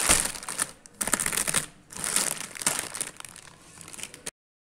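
A snack packet crinkles under fingers.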